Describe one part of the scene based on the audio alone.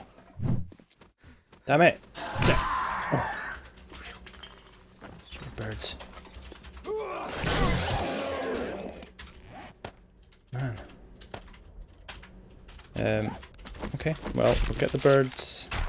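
Heavy blows thud against a zombie.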